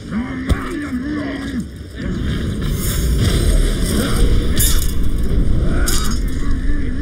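Blades swing and clash in a fight.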